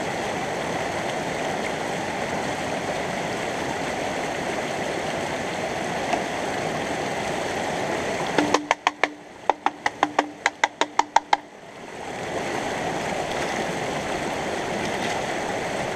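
A shallow stream rushes and babbles over rocks.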